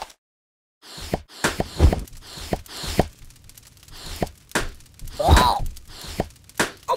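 Fireworks crackle and pop in quick bursts.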